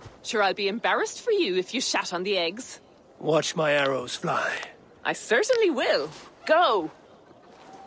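A young woman speaks calmly and playfully close by.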